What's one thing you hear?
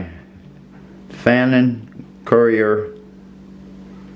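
A small knob clicks as it is turned.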